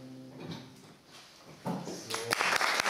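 Two guitars play softly together.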